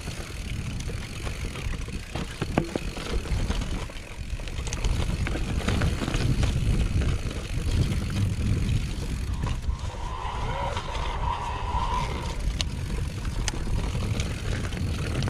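Mountain bike tyres roll and rattle over a rocky grass trail.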